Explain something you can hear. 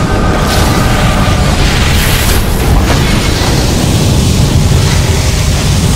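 Energy weapons zap and crackle.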